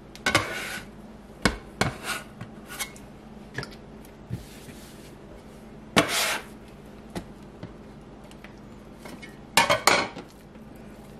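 A metal bench scraper scrapes and taps on a countertop.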